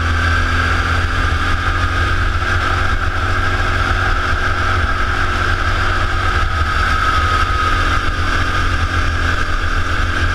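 A go-kart engine whines loudly and steadily up close.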